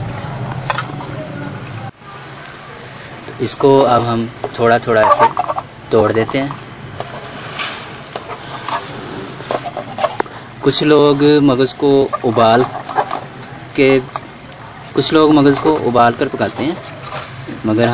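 A metal spatula scrapes and taps against a metal pan.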